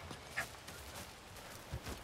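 Leaves and brush rustle as someone pushes through.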